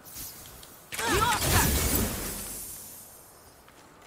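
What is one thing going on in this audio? A bridge of light forms with a rushing whoosh.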